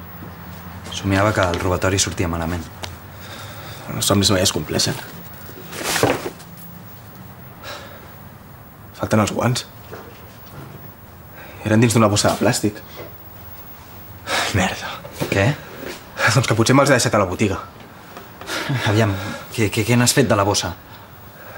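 A man answers in a low voice, close by.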